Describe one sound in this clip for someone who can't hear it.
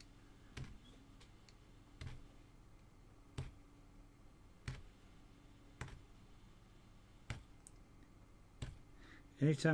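A punch needle pokes through taut cloth with soft regular thuds.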